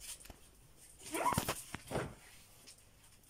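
A small kitten mews loudly.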